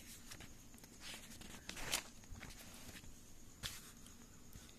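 Paper pages rustle as they are flipped over.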